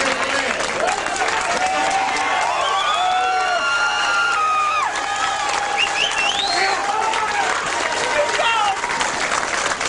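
A crowd of men shouts encouragement.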